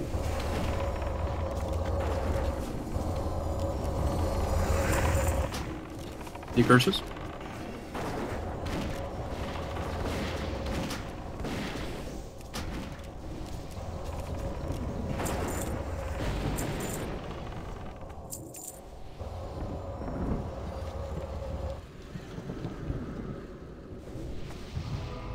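Magic spells crackle and boom in a busy battle.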